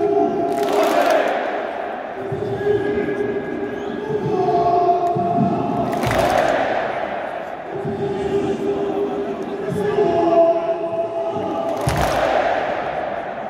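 A large stadium crowd chants in unison outdoors.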